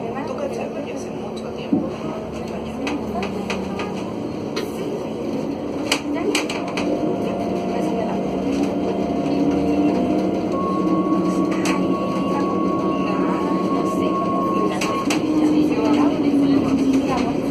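The bus body rattles and clicks over the road.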